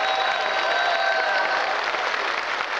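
A group of men sing a final chord together on stage.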